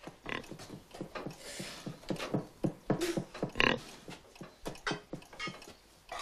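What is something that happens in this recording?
A pig grunts and snuffles close by.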